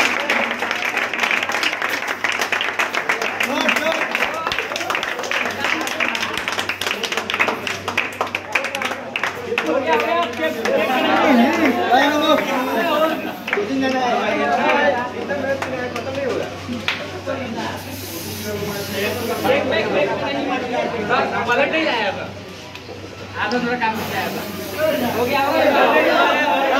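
A crowd of young men cheers and shouts loudly in a room.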